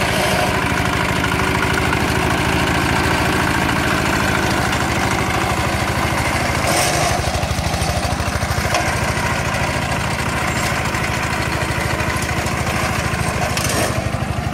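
A tractor-driven flail mower whirs and thrashes through brush.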